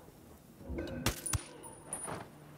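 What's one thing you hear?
A silenced rifle fires a single muffled shot.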